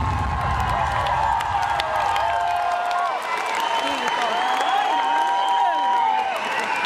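A crowd of young women screams and cheers loudly close by.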